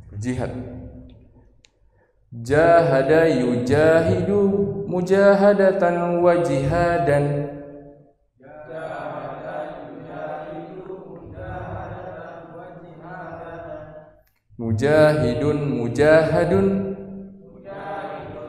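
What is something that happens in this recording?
A man lectures with animation through a headset microphone.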